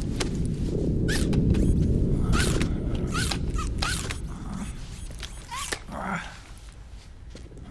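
Small metal feet patter quickly across a floor.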